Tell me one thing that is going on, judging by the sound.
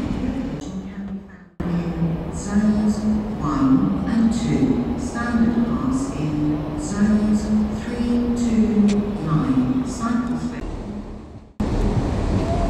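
A diesel train engine drones and throbs as a train pulls slowly in.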